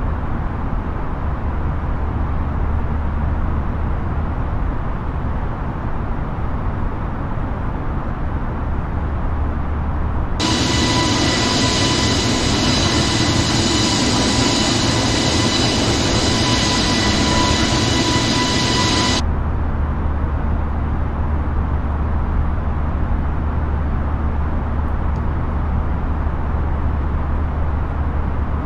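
Jet engines hum low and muffled, as if heard from inside the aircraft.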